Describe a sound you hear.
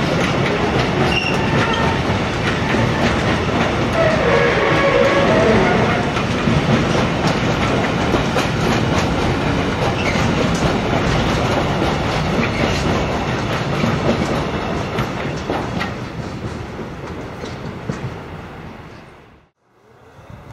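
A freight train rumbles and clatters past close by, then fades away.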